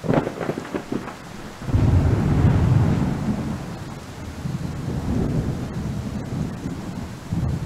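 A young man talks casually and close into a microphone.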